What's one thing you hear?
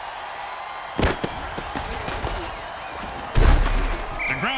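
Armoured players collide with a heavy thud in a tackle.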